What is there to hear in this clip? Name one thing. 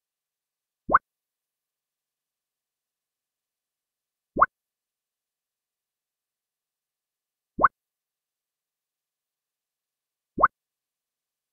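A short rising blip sounds several times.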